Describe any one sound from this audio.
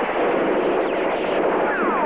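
An explosion bursts with a blast.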